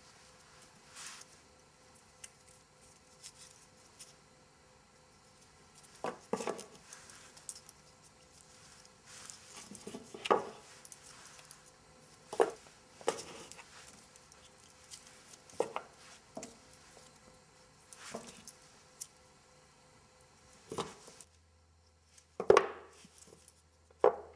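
Wooden blocks clack softly as hands pick them up and set them into a wooden tray.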